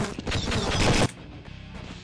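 A gun fires a quick burst of shots.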